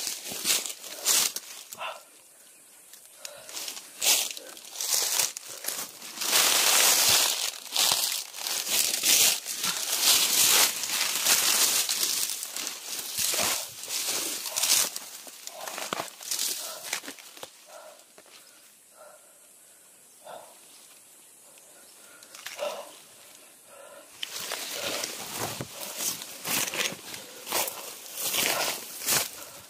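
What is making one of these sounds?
Leaves and grass rustle and swish close by.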